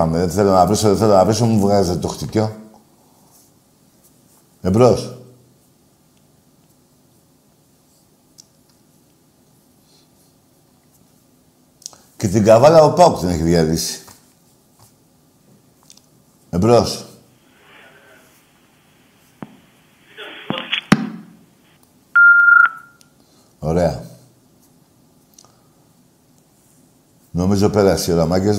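An elderly man speaks into a microphone in short bursts, with long pauses.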